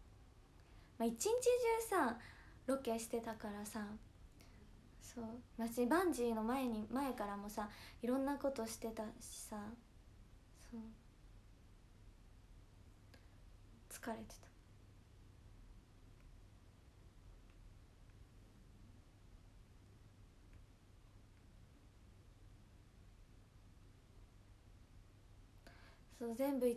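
A young woman talks calmly and close to a microphone, with pauses.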